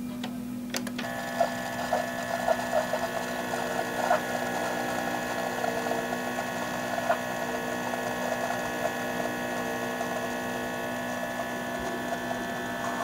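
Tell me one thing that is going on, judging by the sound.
A coffee machine hums and gurgles steadily as coffee drips.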